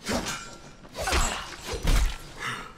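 A blade slashes and strikes with heavy, fleshy thuds.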